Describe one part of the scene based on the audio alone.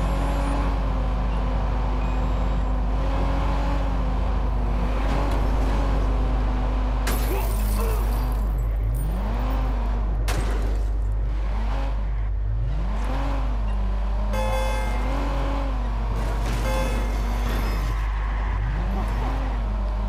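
A car engine roars and revs up and down steadily.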